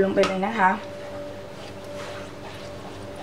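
A spatula scrapes and stirs inside a bowl.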